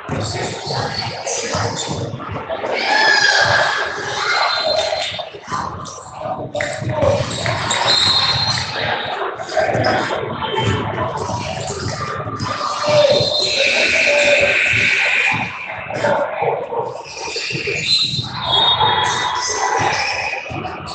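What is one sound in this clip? Sneakers squeak sharply on a hardwood court.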